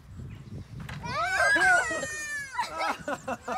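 A young child squeals and shouts excitedly nearby.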